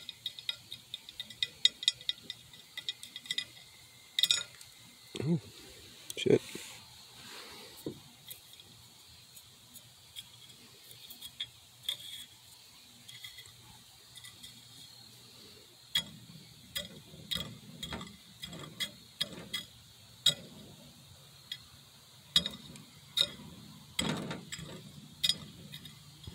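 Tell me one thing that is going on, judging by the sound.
A stick scrapes and taps on a glass plate.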